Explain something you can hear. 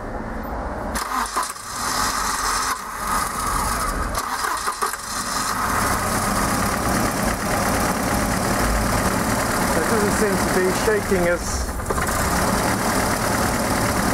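An engine runs with a steady, rushing hum.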